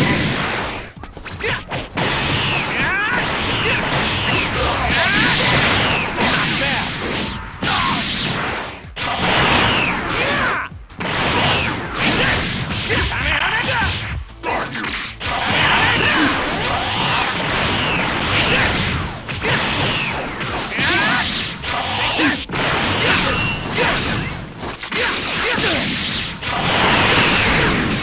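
Punches and kicks land with sharp impact sounds in a video game fight.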